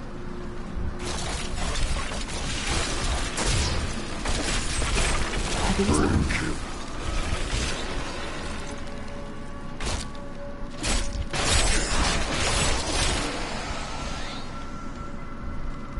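Skeleton warriors clash and hack at creatures with rattling blows.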